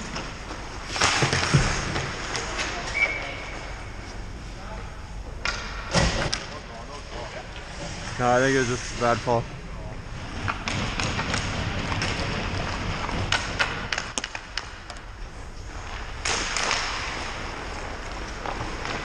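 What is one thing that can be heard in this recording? Ice skates scrape and carve across the ice in a large echoing rink.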